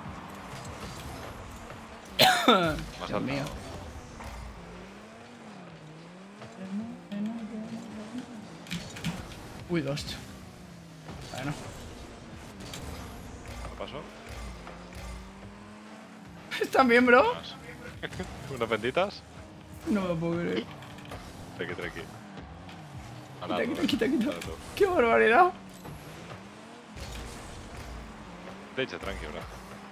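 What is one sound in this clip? Car engines hum and boost in a game.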